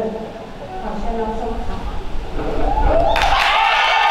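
A young woman speaks through a microphone.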